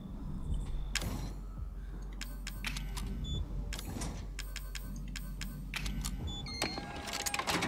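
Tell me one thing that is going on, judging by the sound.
Short electronic menu clicks and beeps sound in quick bursts.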